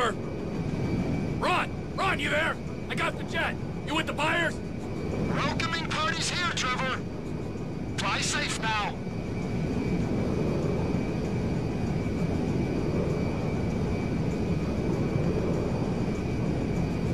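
A large plane's jet engines roar steadily.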